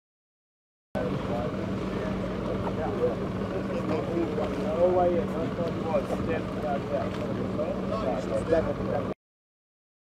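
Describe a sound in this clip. A small motorboat's engine hums across the water.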